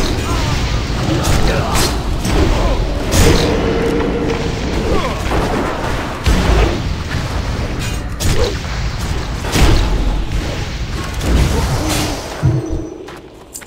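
Weapons clash and magic blasts burst in a loud, busy fight.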